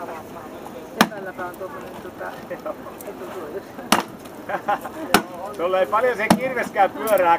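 An axe strikes wood with loud, sharp knocks.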